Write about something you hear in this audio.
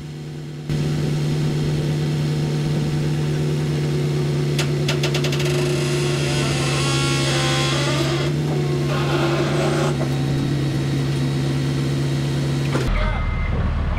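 A machine's motor hums steadily.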